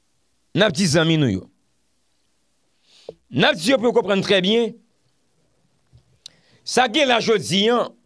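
A man speaks calmly and closely into a microphone, in short bursts with pauses.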